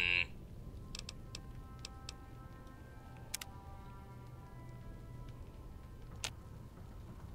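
Short interface clicks tick several times.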